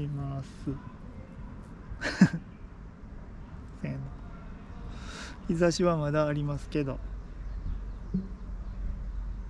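A man speaks softly up close.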